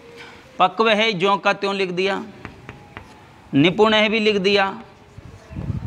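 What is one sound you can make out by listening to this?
A young man speaks loudly and clearly, as if teaching a class.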